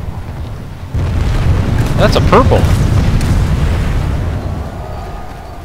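An explosion booms and rumbles nearby.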